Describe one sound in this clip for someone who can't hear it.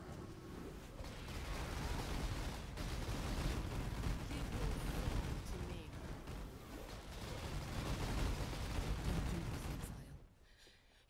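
Magic blasts crackle and boom in a loud, busy battle.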